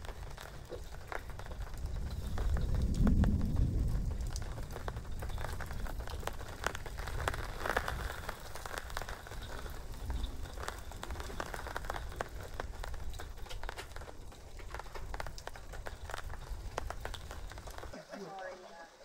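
Thunder rumbles deeply and rolls on.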